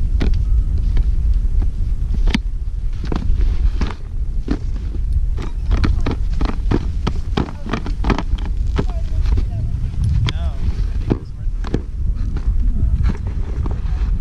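Ski poles click and tap on packed snow.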